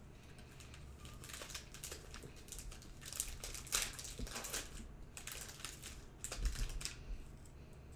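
A foil wrapper crinkles and tears as hands open a pack.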